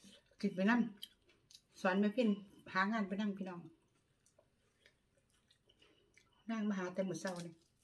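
A middle-aged woman slurps noodles.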